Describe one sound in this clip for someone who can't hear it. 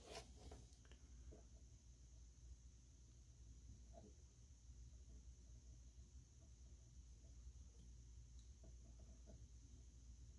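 A soldering iron tip taps and scrapes softly against metal pins.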